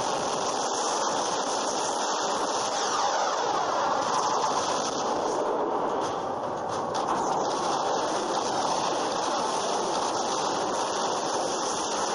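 Heavy guns fire in rapid bursts.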